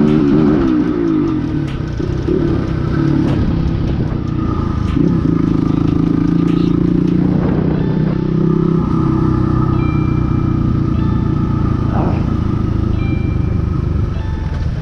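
A motorcycle engine hums and revs steadily up close.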